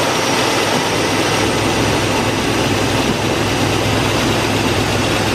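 A belt whirs over a pulley.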